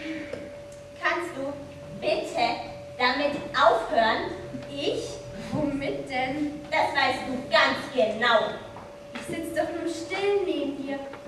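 A young performer speaks with animation.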